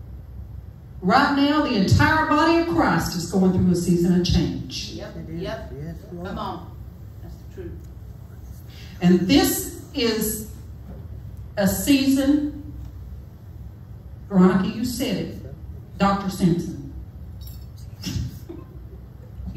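A woman speaks with animation into a microphone, heard through a loudspeaker in an echoing room.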